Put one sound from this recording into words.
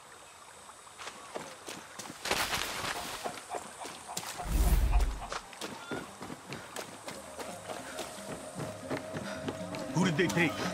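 Footsteps run quickly over dirt and wooden boards.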